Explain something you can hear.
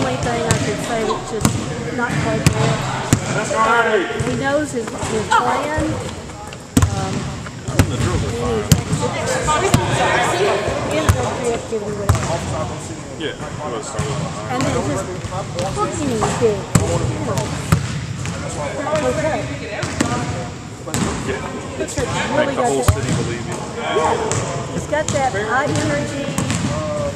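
Young people talk and shout across the gym.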